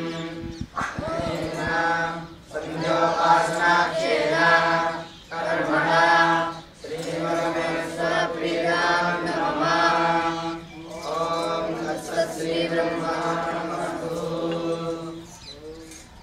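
A group of young men chant together in unison.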